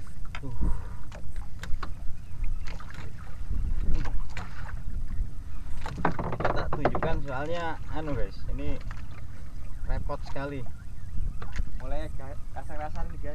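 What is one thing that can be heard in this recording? A fishing reel clicks as a young man winds it.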